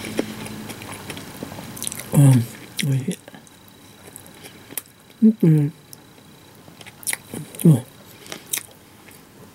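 A woman chews food with her mouth open.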